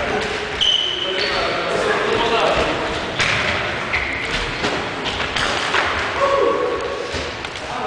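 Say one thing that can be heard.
Sports shoes squeak on a wooden floor in an echoing hall.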